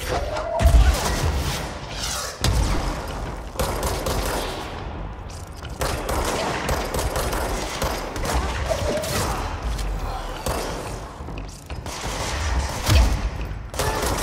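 Explosions boom and crackle.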